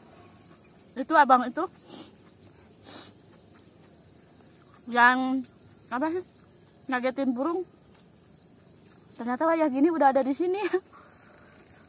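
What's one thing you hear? A young woman speaks up close in short, lively bursts.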